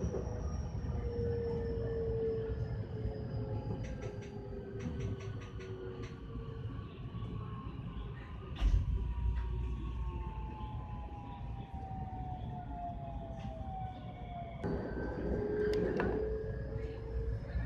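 A train rumbles and hums steadily along the rails from inside the cab.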